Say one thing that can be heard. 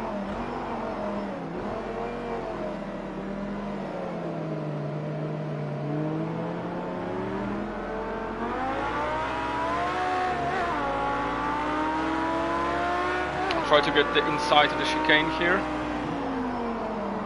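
A racing car engine roars and revs up and down through the gears.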